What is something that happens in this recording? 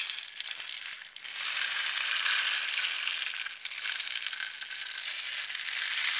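A rain stick hisses and patters as the grains inside trickle down.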